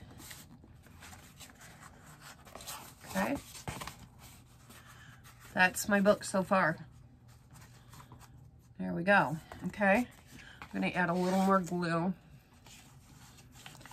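Paper crinkles and rustles as it is folded and handled.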